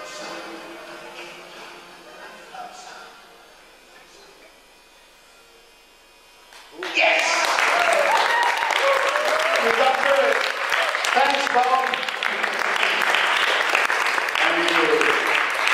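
An elderly man speaks through a microphone in a large echoing hall, quietly at first and then loudly and with animation.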